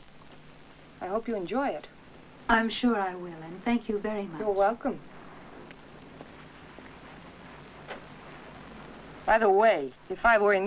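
A second woman answers calmly nearby.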